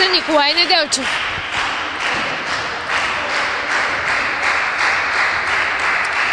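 A crowd claps in rhythm in a large echoing hall.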